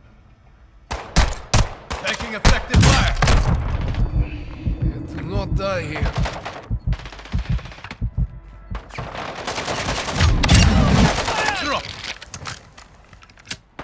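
A shotgun fires repeatedly in loud blasts.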